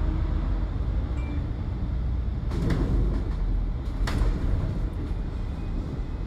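A vehicle engine rumbles low and steady from close by.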